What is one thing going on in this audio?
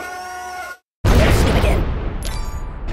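A tank cannon fires with a loud blast.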